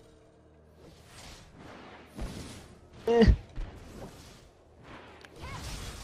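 Spell blasts whoosh and crackle as game characters fight.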